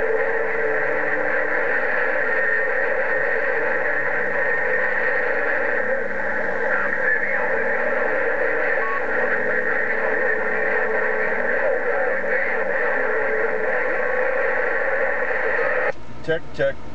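Static hisses loudly and steadily from a radio.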